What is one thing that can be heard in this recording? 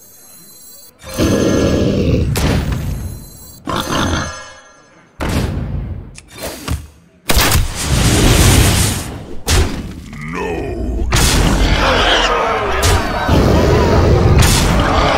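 Game sound effects of whooshes and thuds burst out in quick succession.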